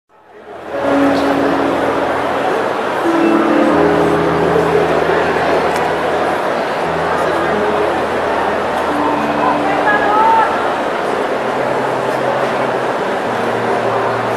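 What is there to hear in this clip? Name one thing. An elderly man sings into a microphone.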